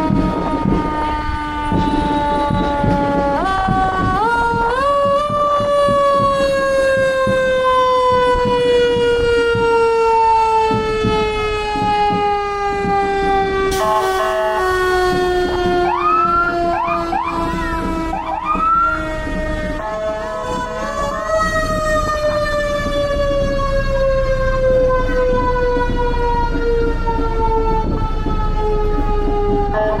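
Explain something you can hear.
Fire engine sirens wail loudly and slowly drop in pitch as the trucks pass close by.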